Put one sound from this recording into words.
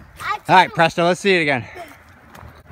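A young boy shouts excitedly close by.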